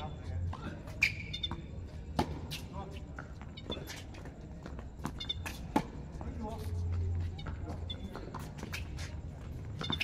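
Tennis balls are struck by rackets with sharp pops.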